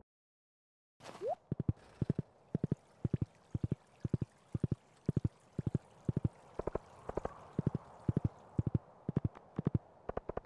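Footsteps crunch through snow at a quick, steady pace.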